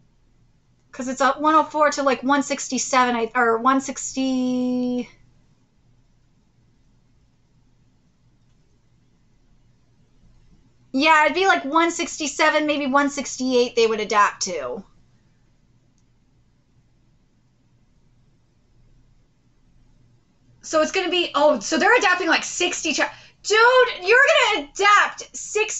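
A young woman talks calmly and close to a microphone, with pauses between phrases.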